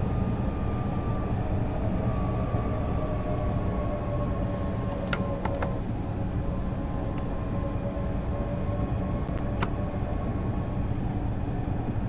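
A motor whines, slowly falling in pitch as the train slows.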